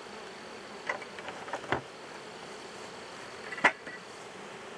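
A plastic bucket knocks and clatters against a wooden hive lid.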